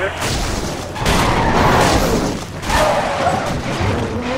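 A car crashes with a loud metallic smash.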